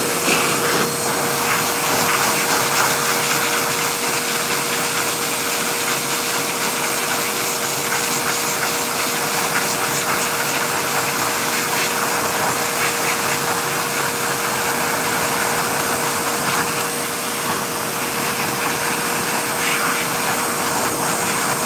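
A hair dryer blows steadily with a loud whooshing hum.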